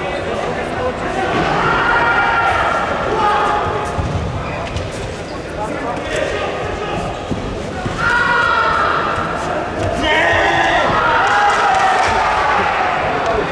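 Karate fighters shout sharply as they strike.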